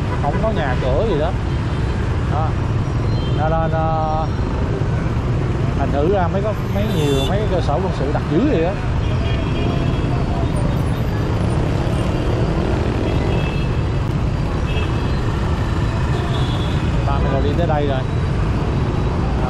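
Motorbike engines idle and rumble all around in busy street traffic.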